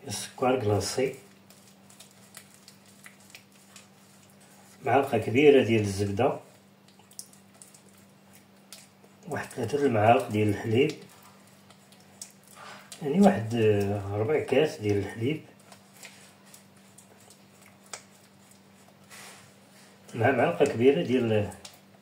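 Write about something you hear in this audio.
A spoon stirs a thick paste in a bowl, scraping softly.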